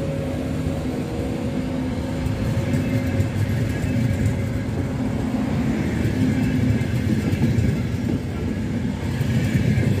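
A high-speed train rolls slowly past close by with a low rumble and humming motors.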